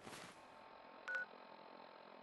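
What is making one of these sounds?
A device clicks and beeps softly.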